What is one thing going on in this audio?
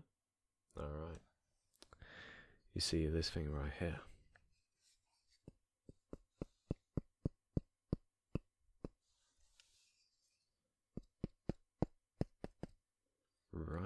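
A young man speaks softly and close to a microphone.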